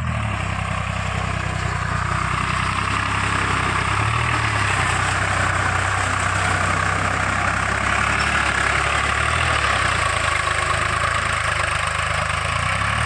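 Tractor wheels churn and splash through wet mud.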